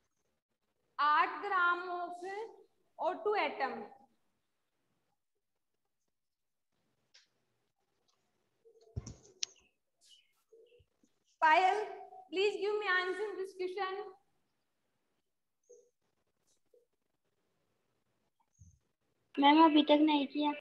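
A young woman speaks calmly into a clip-on microphone, in pauses.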